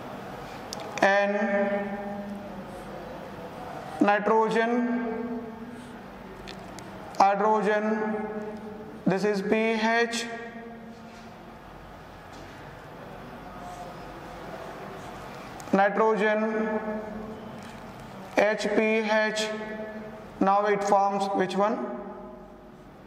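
A man speaks calmly in short bursts, close by.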